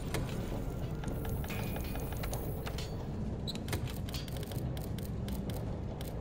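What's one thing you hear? Short menu clicks tick quickly and repeatedly.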